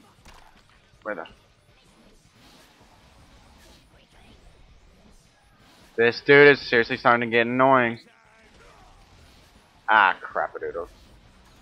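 A young man speaks close to a microphone in short bursts.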